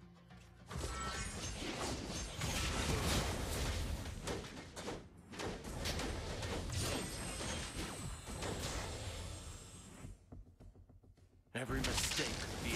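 Game battle effects whoosh, clash and explode in quick bursts.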